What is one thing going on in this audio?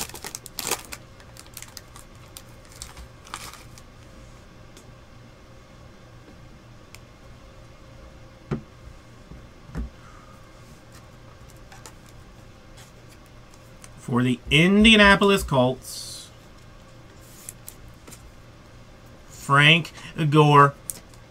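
Trading cards rustle and click softly as hands sort through them.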